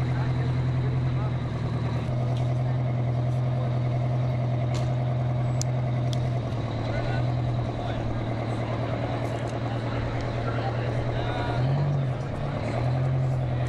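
A big diesel truck engine idles with a loud, steady rumble nearby.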